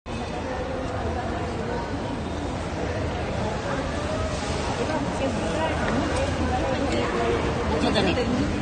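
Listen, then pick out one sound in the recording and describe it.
Young women chatter and laugh close by.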